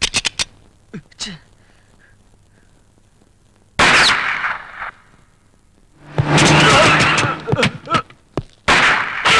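Gunshots ring out sharply, one after another.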